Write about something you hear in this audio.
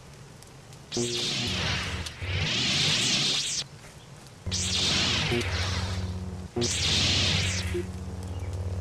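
A lightsaber hums and swooshes loudly.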